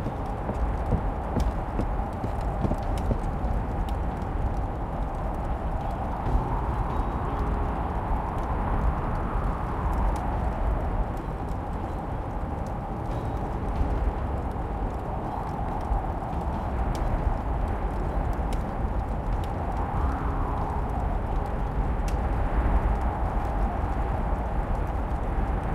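A fire crackles softly in a hearth.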